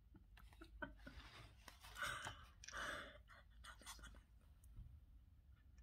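A young woman giggles quietly.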